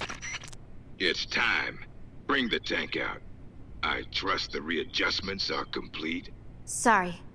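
A young woman speaks calmly over a radio.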